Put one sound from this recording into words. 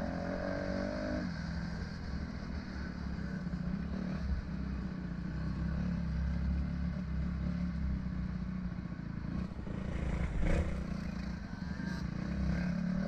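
A dirt bike engine runs at low speed along a dirt trail.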